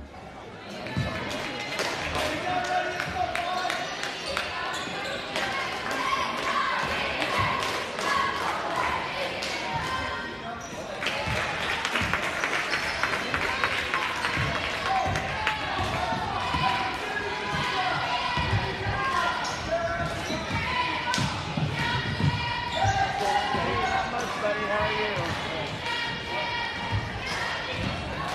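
A crowd in a large echoing gym chatters and cheers.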